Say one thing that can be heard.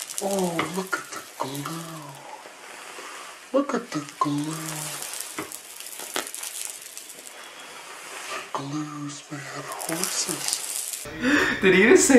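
Water sprays steadily from a shower.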